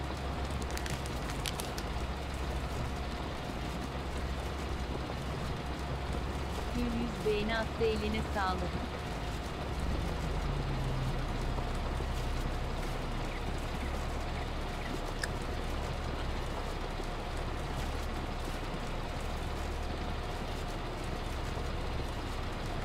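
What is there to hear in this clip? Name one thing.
A harvester engine hums steadily.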